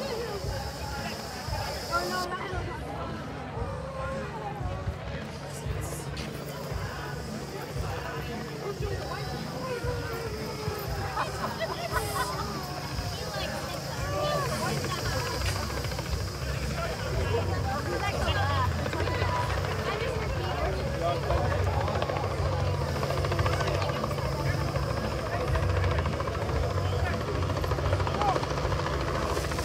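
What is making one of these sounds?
People in a nearby crowd chat and murmur outdoors.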